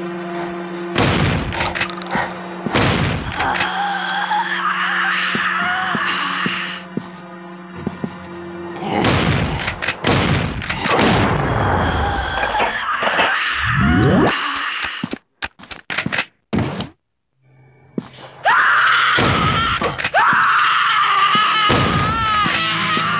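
Gunshots fire in sharp bursts.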